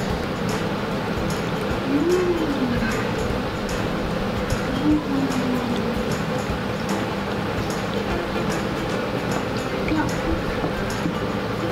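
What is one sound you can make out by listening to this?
Broth pours from a spoon and splashes onto noodles.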